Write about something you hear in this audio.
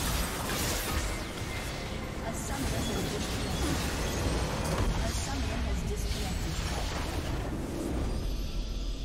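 Game spell effects crackle and burst loudly during a battle.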